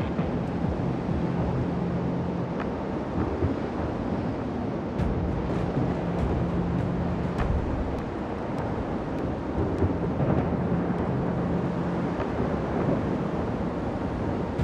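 Waves rush and splash against a ship's hull as it moves through the sea.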